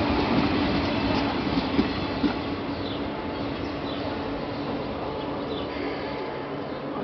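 A passing train rumbles and clatters over the rails, then fades away.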